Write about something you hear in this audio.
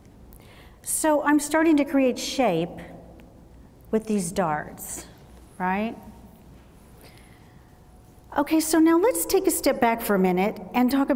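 A woman talks with animation into a clip-on microphone.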